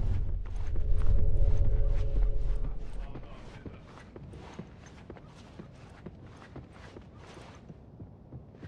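Footsteps run quickly across a wooden floor.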